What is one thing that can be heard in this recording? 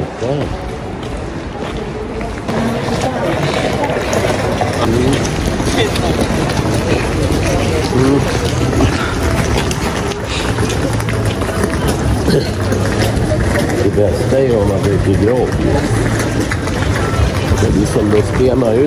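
A crowd of pedestrians chatters nearby and far off outdoors.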